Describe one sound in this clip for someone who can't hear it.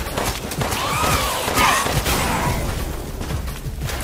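A grenade explodes with a loud blast.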